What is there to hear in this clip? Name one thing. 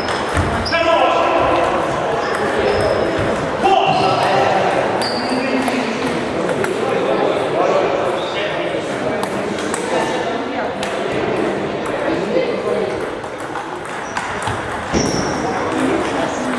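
A table tennis ball clicks against paddles and a table.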